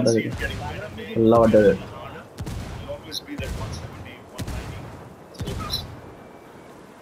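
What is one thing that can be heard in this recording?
Explosions boom and rumble close by.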